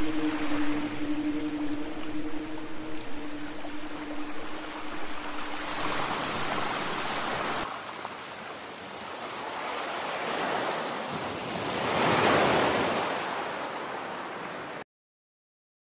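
Small waves wash and splash against a rocky shore.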